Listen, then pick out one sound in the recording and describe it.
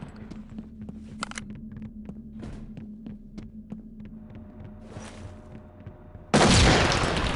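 Footsteps thud quickly on wooden stairs.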